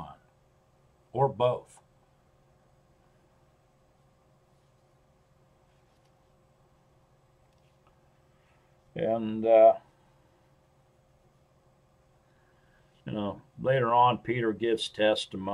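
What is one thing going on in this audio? An elderly man speaks calmly in short bursts, close to a microphone.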